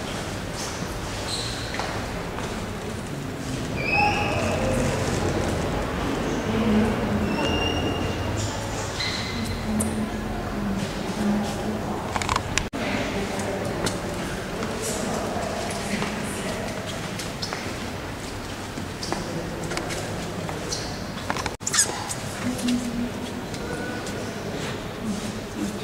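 Quiet voices murmur and echo in a large hall.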